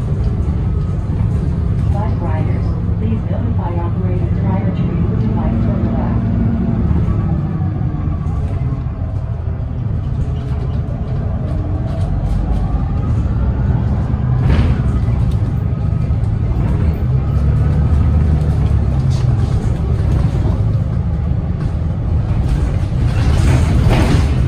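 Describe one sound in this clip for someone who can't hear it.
A bus's body and windows rattle over the road.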